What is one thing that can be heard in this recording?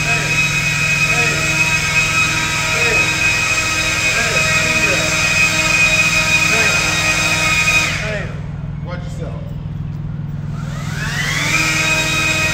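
A leaf blower roars loudly in an echoing metal space, cuts out briefly and then revs back up.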